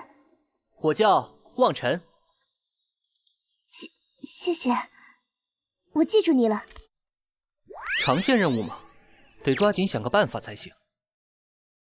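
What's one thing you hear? A young man speaks calmly and close.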